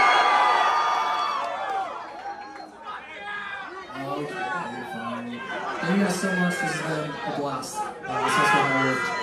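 A band plays loud music through amplifiers in an echoing room.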